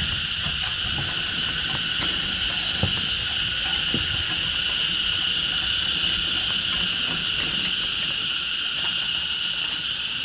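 A cycle rickshaw rolls along a paved lane.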